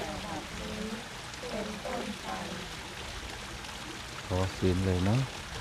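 A man chants in a low voice nearby.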